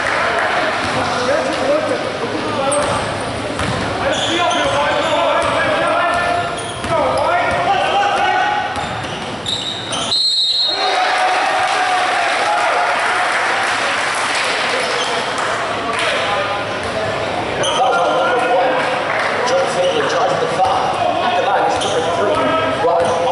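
Players and spectators call out and chatter in a large echoing gym.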